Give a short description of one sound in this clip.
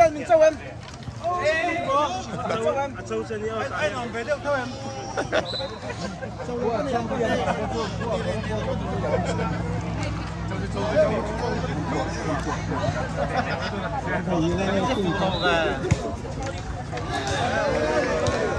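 A crowd of men and women chatter in the background outdoors.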